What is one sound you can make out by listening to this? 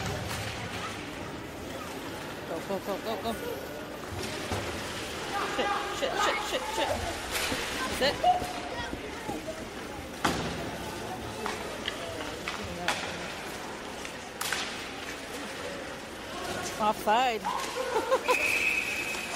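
Spectators talk in a large echoing arena.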